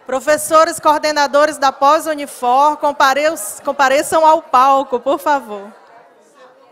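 A woman speaks with animation into a microphone over loudspeakers in a large hall.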